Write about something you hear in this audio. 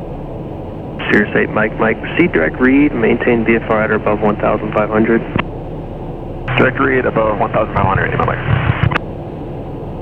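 A man speaks briskly over a crackly headset radio.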